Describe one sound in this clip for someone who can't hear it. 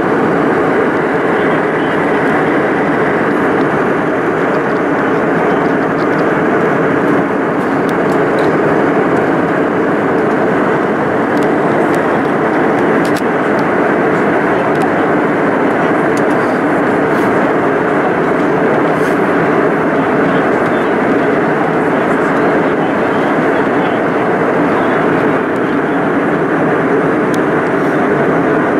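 A jet airliner's engines roar steadily inside the cabin.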